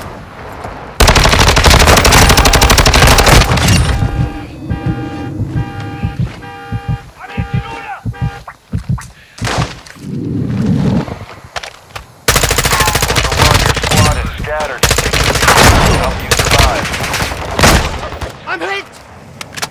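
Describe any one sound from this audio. A rifle fires in rapid bursts of loud shots.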